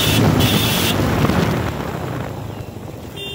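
Wind rushes past loudly at the start, then eases.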